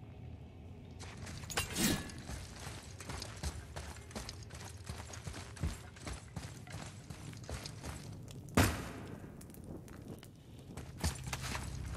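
Heavy footsteps crunch on gravel and stone.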